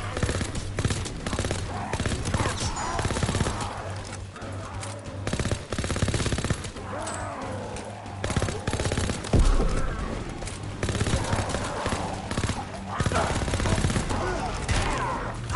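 Zombies growl and groan.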